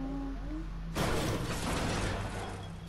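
A pickaxe smashes through a wall.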